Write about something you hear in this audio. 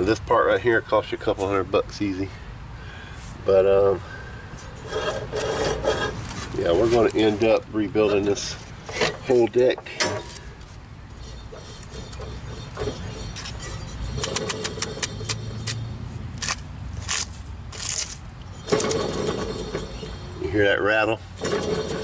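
A hand knocks and scrapes on a metal mower deck.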